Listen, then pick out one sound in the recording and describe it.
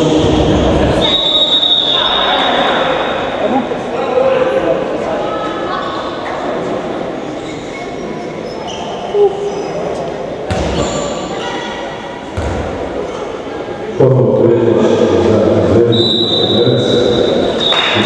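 A whistle blows shrilly.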